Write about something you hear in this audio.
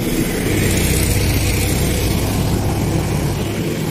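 A motorcycle engine drones as it passes by.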